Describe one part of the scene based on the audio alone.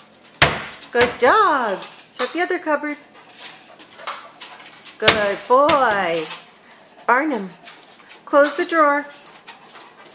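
A dog whines and yelps in rising and falling cries.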